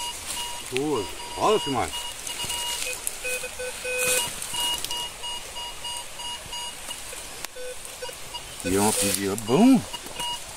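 A metal detector gives rising and falling warbling tones.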